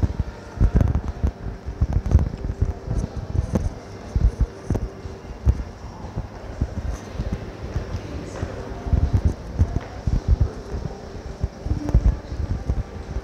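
Footsteps thump steadily on a hard floor close by.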